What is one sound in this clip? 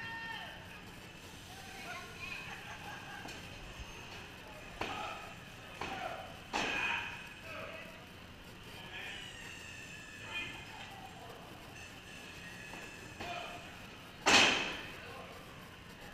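People talk in the distance in a large echoing hall.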